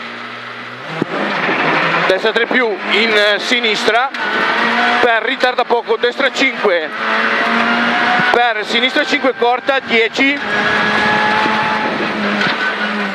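A car engine revs hard and roars as the car speeds up.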